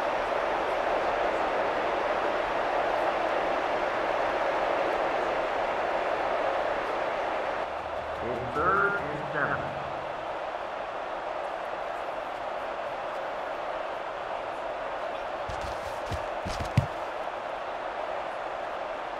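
A large stadium crowd roars steadily, louder at first and then easing off.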